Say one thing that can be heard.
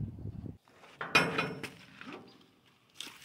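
A heavy metal door creaks and clanks on its hinges.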